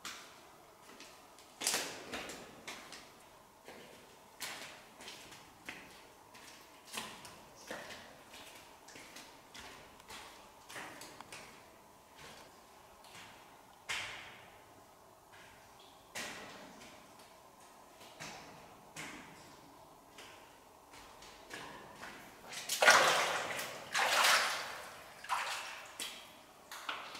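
Footsteps scuff and crunch on rock in an echoing cave.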